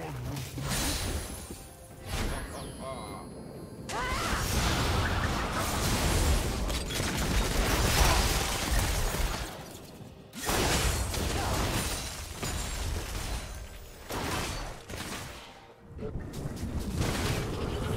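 Fantasy battle effects whoosh, zap and crash as characters fight.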